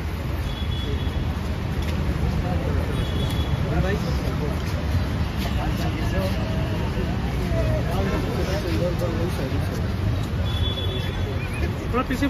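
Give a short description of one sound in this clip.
A crowd murmurs in a busy outdoor street.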